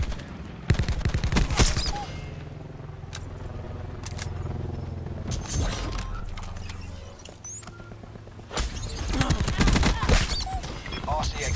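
Gunfire rattles in rapid bursts.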